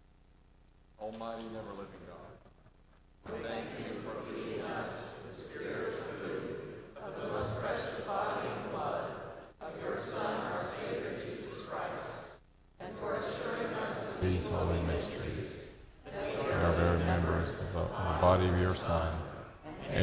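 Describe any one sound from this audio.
A choir sings in a large echoing church.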